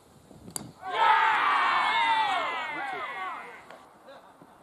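Young men shout and cheer loudly outdoors.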